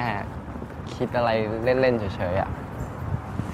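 A second young man answers calmly nearby.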